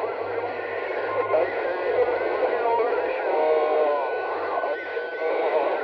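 A radio receiver hisses and crackles with a noisy signal.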